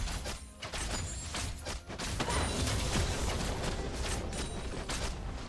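Fantasy spell effects crackle and burst as game characters fight.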